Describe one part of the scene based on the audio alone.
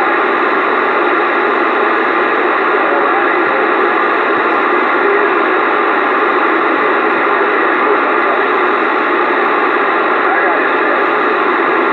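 Radio static hisses steadily from a loudspeaker.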